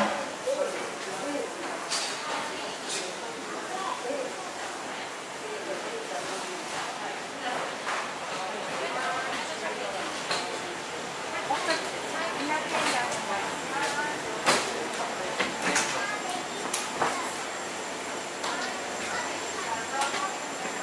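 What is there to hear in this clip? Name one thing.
Indistinct voices of men and women murmur in a large, echoing hall.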